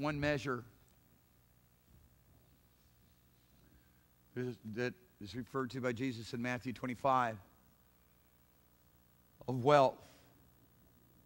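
A middle-aged man speaks with animation through a microphone, with pauses.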